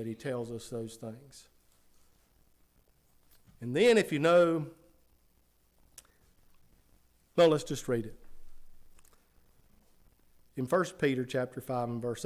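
A middle-aged man speaks slowly and earnestly into a microphone, with pauses between phrases.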